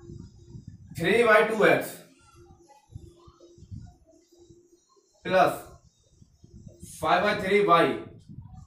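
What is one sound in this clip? A man speaks calmly and clearly nearby.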